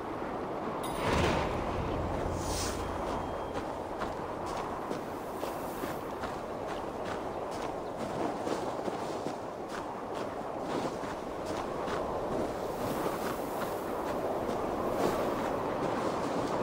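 Footsteps crunch steadily through snow.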